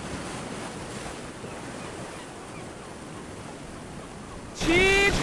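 Waves wash and break against rocks.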